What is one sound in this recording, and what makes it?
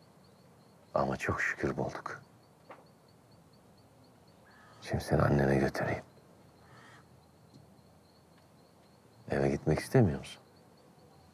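A middle-aged man speaks in a low, calm voice close by.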